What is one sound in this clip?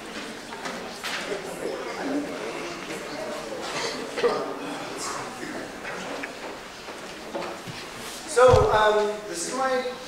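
A guitar is strummed and plucked in a large echoing hall.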